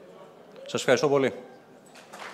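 A man speaks through a microphone in a large hall.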